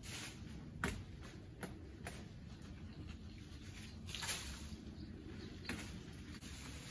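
Wind rustles the leaves of a tree outdoors.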